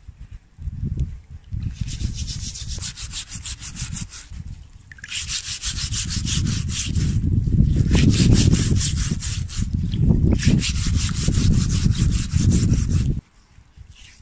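Water sloshes in a metal basin.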